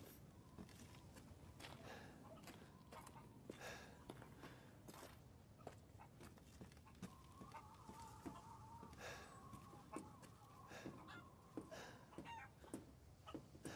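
Footsteps knock on wooden boards and crunch on snow.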